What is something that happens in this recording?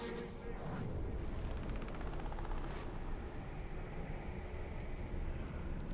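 A gruff creature's voice snarls and growls up close.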